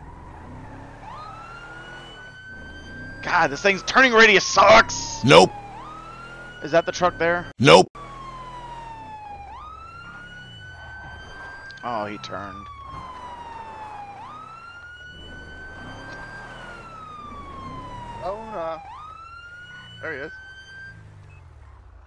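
A siren wails up and down, close by.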